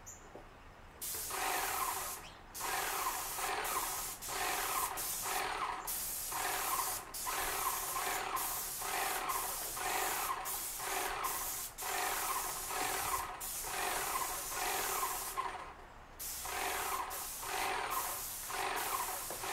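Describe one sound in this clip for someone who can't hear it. A pressure washer sprays water onto a wooden deck in repeated bursts.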